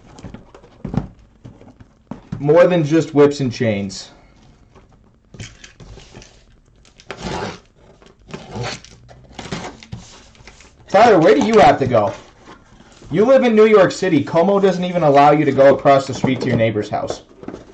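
Cardboard boxes slide and knock against each other.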